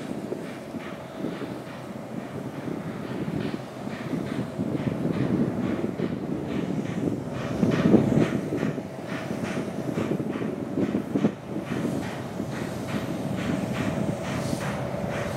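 A steam locomotive chuffs rhythmically as it approaches.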